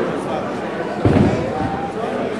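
A bowling ball thuds onto a lane.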